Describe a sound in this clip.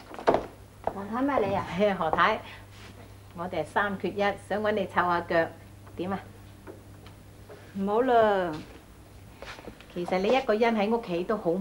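A middle-aged woman speaks in a friendly, lively way nearby.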